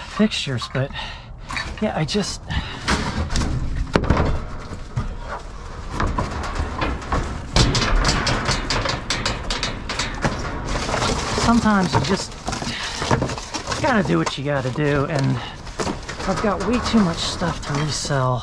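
Plastic wrap crinkles as it is handled.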